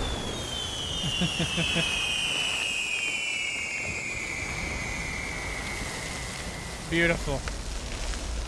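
A man talks into a close microphone in short bursts.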